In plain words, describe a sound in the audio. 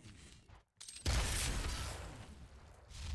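A heavy gun fires with a loud, booming blast.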